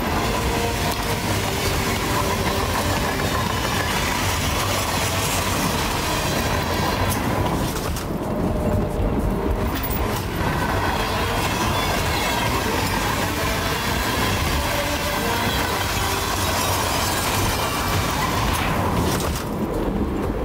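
Strong wind blows and hisses outdoors.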